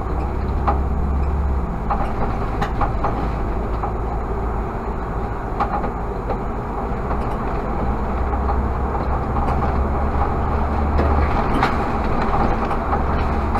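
Tyres roll on asphalt with a steady rumble.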